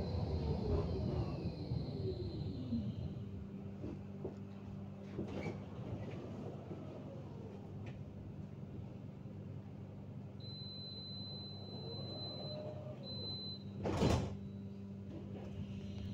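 A tram hums and rumbles steadily along its rails.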